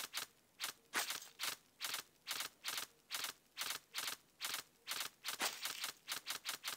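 A knife swishes through the air in quick, repeated slashes.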